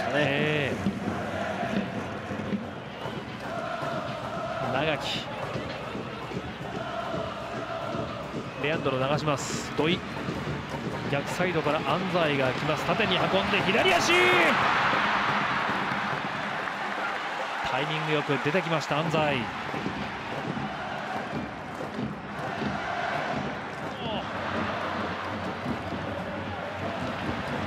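A large stadium crowd roars and cheers, swelling loudly at a scoring chance.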